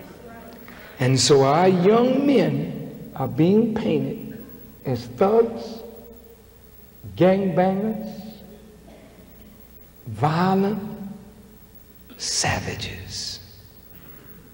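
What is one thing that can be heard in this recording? A man speaks forcefully into a microphone in bursts, his voice echoing in a large hall.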